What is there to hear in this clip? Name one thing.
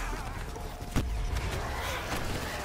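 A fiery blast bursts with a roar.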